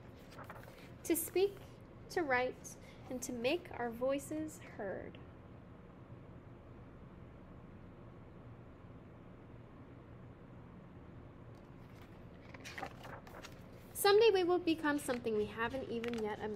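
A young woman reads aloud expressively, close by.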